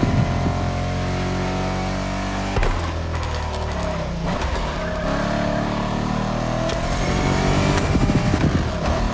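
A race car engine roars loudly, its pitch dropping and rising as it shifts gears.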